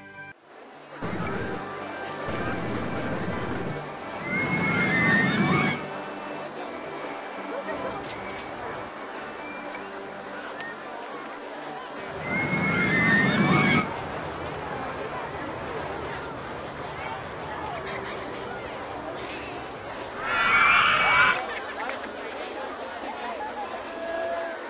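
A roller coaster train rattles along a wooden track.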